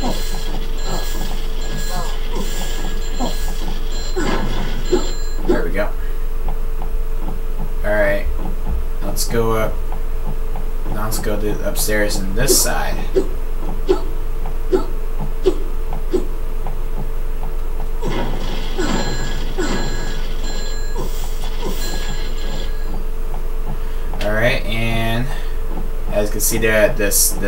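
Cartoon sound effects pop and jingle through a television speaker.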